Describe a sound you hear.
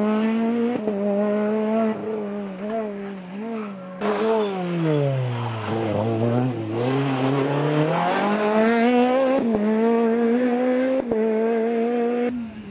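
A rally car engine roars loudly, revving high and dropping as it brakes and accelerates.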